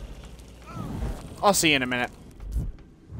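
A man speaks with animation into a headset microphone.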